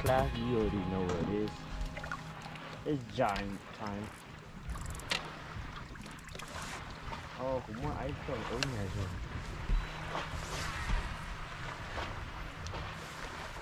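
Water laps against a boat hull.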